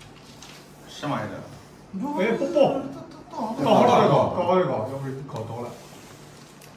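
Men talk and laugh loudly nearby.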